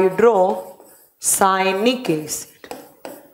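A woman speaks with animation, close to a microphone.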